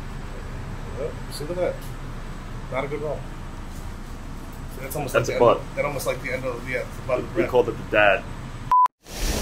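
A man talks casually up close.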